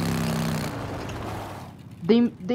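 A motorcycle engine rumbles.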